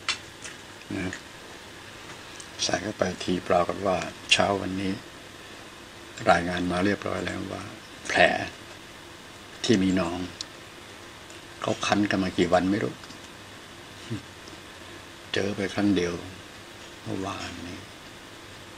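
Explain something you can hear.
An elderly man speaks calmly, close by, in short bursts.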